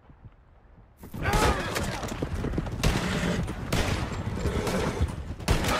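Horses gallop on a dirt track.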